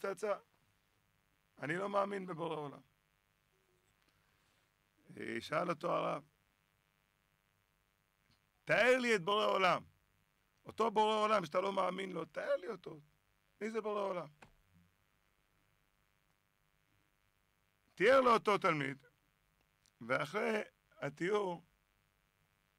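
A man speaks with animation into a close microphone, in bursts with pauses.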